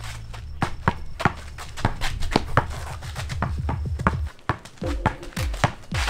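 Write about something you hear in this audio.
A basketball bounces on asphalt.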